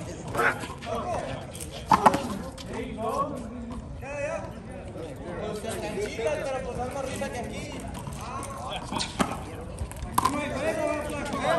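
Men talk and call out to each other nearby, outdoors.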